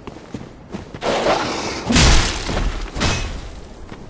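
Loose gravel rushes and scrapes as a body slides down a slope.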